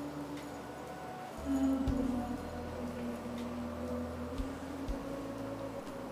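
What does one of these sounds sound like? Footsteps shuffle softly across a floor.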